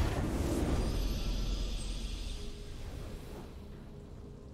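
A triumphant game fanfare blares and then fades away.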